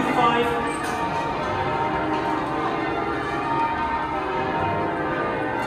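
Church bells ring loudly overhead in overlapping peals.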